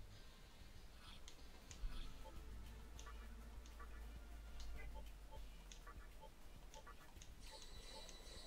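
Short electronic menu blips sound repeatedly as options are chosen.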